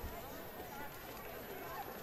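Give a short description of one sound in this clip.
Footsteps shuffle on paving stones as a group of people walks slowly.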